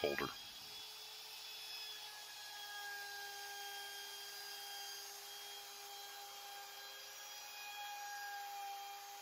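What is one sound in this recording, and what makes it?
A handheld router whines steadily as it cuts into wood.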